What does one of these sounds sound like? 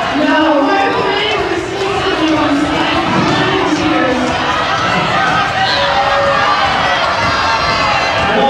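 Roller skate wheels rumble and roll across a hard floor.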